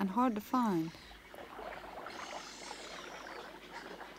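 Young birds chirp in a nest.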